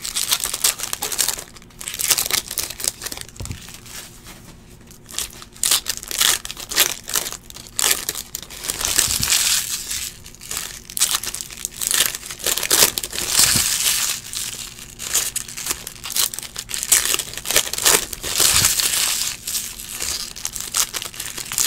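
Foil card wrappers crinkle and rustle as they are torn open.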